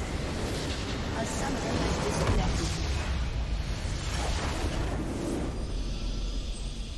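A large structure explodes with a deep rumbling blast.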